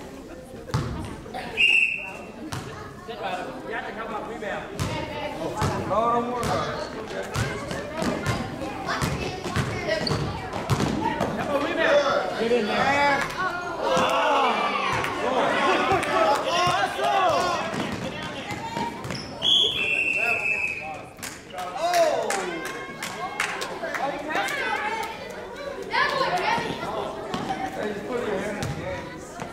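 Children shout and call out, echoing in a large hall.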